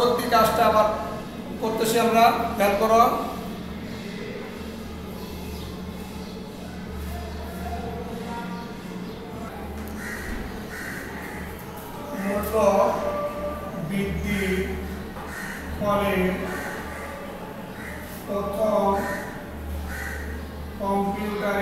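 A middle-aged man speaks calmly and clearly, close by.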